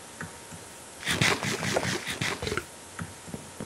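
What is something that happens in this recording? Loud crunchy chewing sounds as food is eaten.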